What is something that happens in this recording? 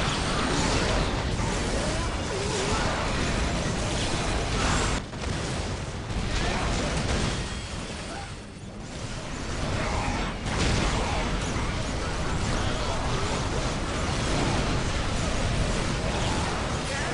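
Gunfire and explosions rattle and boom in a chaotic battle.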